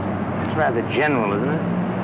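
A man speaks warmly, close by.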